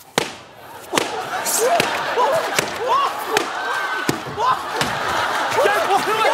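A large audience laughs and cheers loudly.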